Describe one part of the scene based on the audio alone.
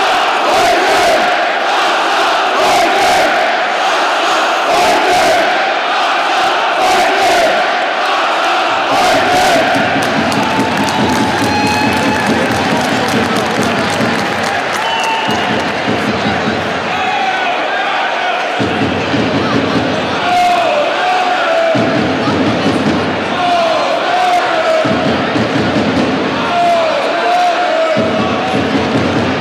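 A large crowd in an echoing arena cheers and chants loudly.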